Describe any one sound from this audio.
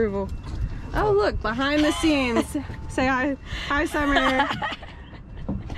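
A young woman talks excitedly and laughs close by.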